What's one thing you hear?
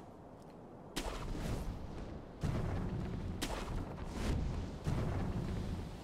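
A grappling rope whooshes and swings through the air.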